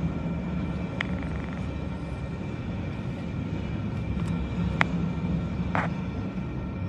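Freight train wheels clank on the rails.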